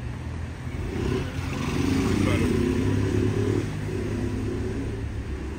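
A motorbike engine rumbles past close by.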